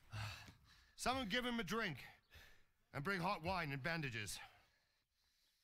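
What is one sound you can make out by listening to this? An elderly man speaks gravely, close by.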